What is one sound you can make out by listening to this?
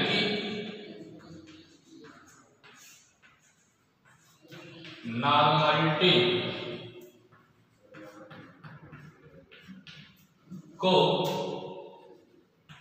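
A man speaks calmly and loudly, close by, with pauses.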